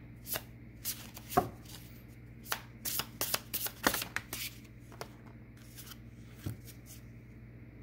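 Cards rustle and tap as a hand handles them.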